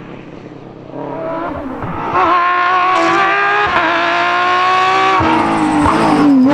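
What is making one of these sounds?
A second rally car engine approaches, revving loudly and climbing through the gears.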